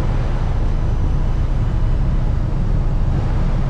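Water churns and splashes along the side of a moving boat.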